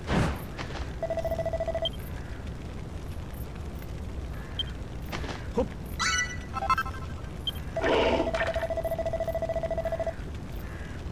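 Rapid electronic blips tick quickly in bursts.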